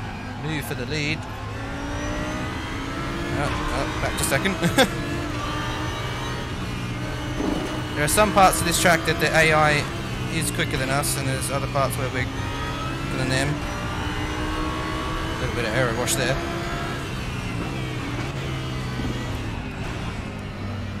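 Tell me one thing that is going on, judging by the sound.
A racing car engine drones steadily and shifts pitch as it speeds up and slows down.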